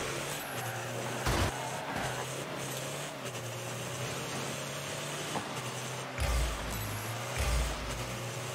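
A game car's engine hums steadily.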